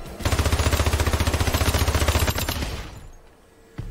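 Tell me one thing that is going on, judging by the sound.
A rapid-fire gun fires a quick burst of shots.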